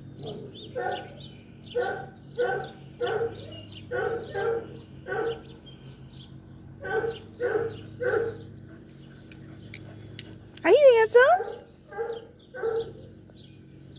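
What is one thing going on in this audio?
A dog barks repeatedly nearby.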